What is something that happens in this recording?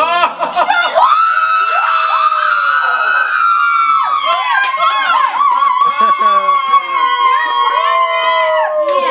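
Several women scream with excitement close by.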